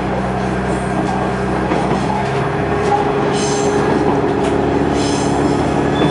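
A level crossing bell rings as the train passes.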